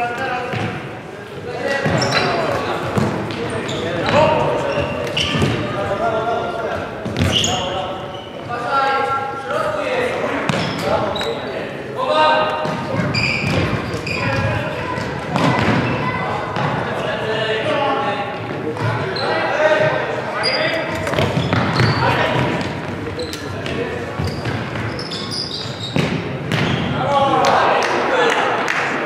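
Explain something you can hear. A ball is kicked and thuds across a hard floor.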